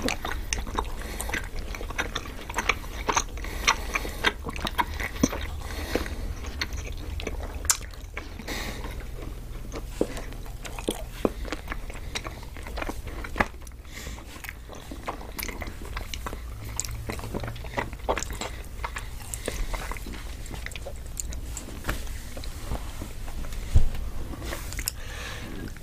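A young woman and a man chew soft sweets close to a microphone, with wet, crunchy mouth sounds.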